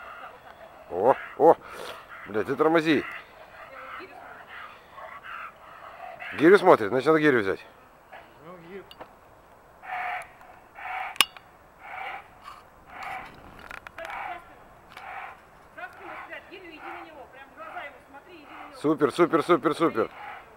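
A large dog barks loudly in short bursts.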